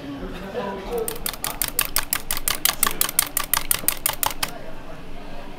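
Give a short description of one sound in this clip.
A whisk clatters quickly against a metal bowl, beating eggs.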